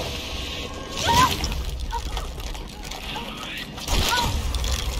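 A young woman gasps and cries out in fear.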